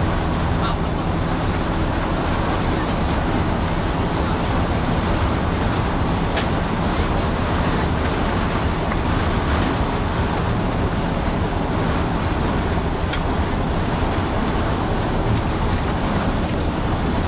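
A bus engine hums steadily from inside the cabin.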